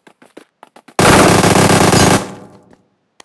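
A rifle fires a loud rapid burst.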